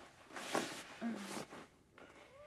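A man groans in distress.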